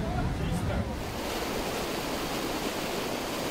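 Meltwater gushes and splashes.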